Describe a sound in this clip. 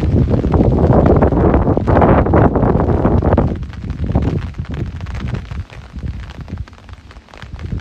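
Rain patters steadily on an umbrella overhead.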